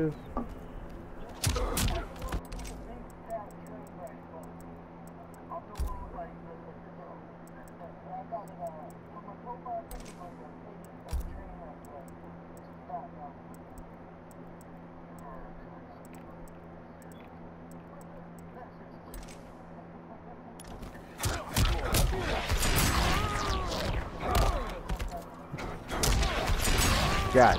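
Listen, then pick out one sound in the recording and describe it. Heavy blows thud and crack in a video game fight.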